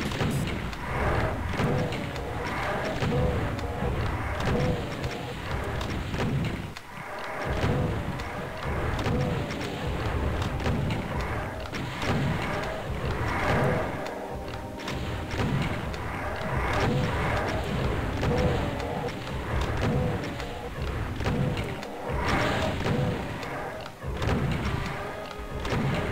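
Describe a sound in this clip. A double-barrelled shotgun fires again and again with heavy booming blasts.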